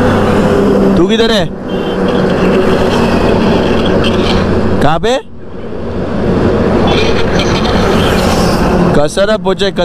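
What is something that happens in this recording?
A heavy truck rumbles past on the road.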